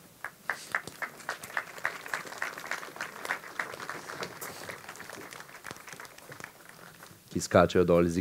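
An audience claps steadily in rhythm.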